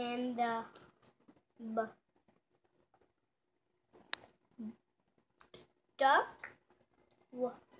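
A young child reads aloud close by, in short bursts.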